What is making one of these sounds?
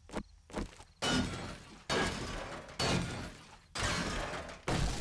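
A hammer knocks repeatedly on a wooden barricade.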